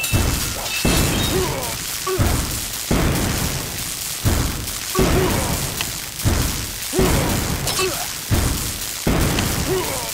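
Cannon shells explode with loud, booming blasts, again and again.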